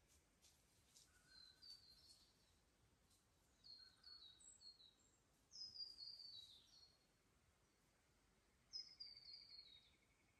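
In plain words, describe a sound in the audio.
Water trickles gently over stones in a shallow creek.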